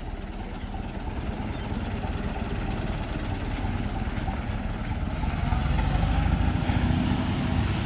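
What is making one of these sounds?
An old truck engine rumbles slowly past.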